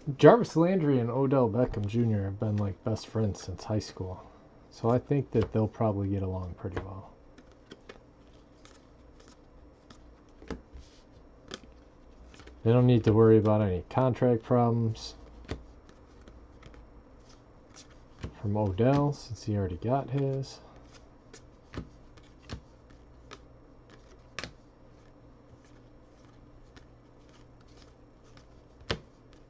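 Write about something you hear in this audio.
Stiff cards flick and slide against each other as they are sorted by hand.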